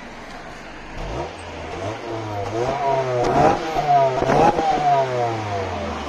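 A car engine starts and revs up and down loudly through the exhaust.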